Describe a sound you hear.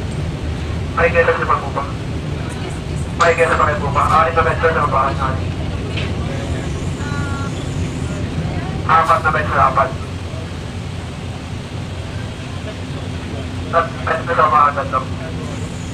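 A man talks nearby in short bursts.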